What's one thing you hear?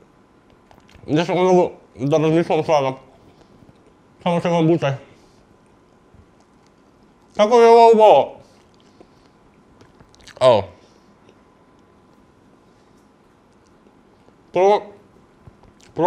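A young man speaks expressively into a close microphone, in short bursts with pauses.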